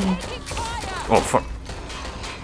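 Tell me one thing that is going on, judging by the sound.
Pistol shots crack sharply.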